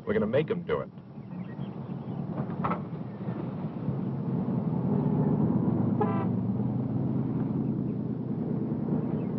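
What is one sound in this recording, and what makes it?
A car engine hums steadily and grows louder as the car pulls away.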